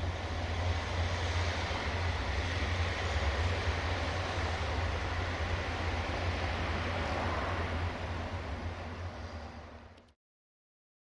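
A diesel locomotive engine idles with a steady low rumble.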